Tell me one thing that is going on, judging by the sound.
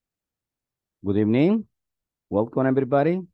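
A young man speaks calmly through a headset microphone on an online call.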